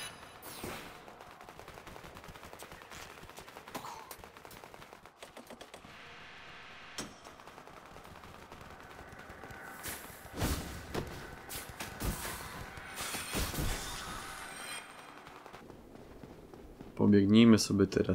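Armoured footsteps run over stone.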